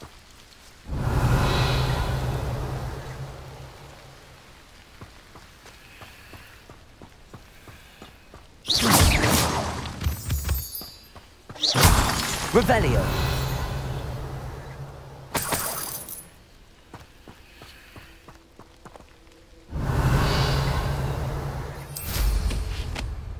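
A magic spell bursts with a loud, crackling whoosh.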